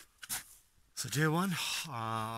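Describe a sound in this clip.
A man speaks up close, with some animation.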